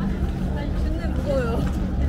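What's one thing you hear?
Young people chat nearby outdoors.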